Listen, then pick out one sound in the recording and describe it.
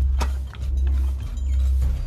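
A shovel scrapes and digs into dry soil.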